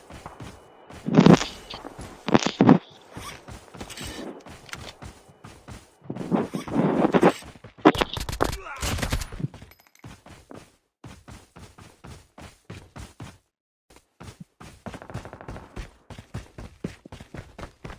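Quick footsteps run over dry grass and dirt.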